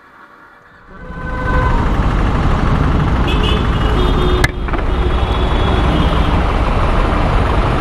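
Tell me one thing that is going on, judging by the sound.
A motorcycle engine rumbles loudly nearby.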